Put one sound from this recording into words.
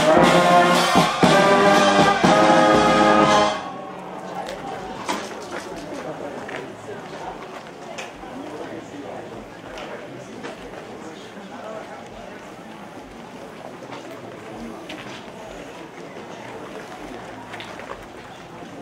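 Footsteps shuffle on a paved street.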